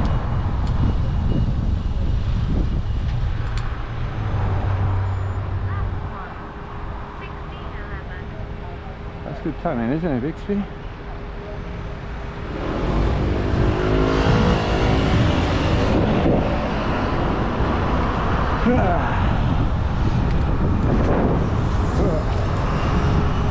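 Wind buffets the microphone while riding outdoors.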